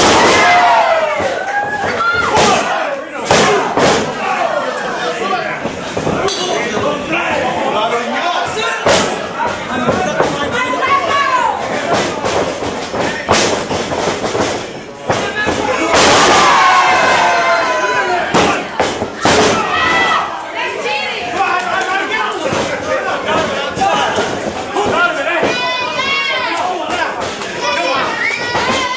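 A crowd of spectators shouts and cheers nearby.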